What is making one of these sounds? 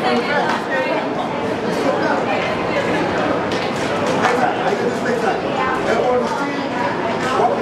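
Onlookers nearby shout and call out.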